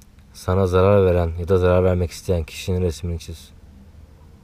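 A man speaks quietly and closely.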